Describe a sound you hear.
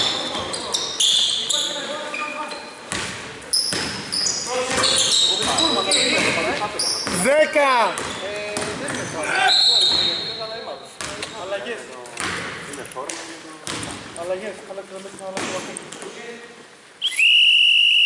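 A basketball bounces and thuds on the floor.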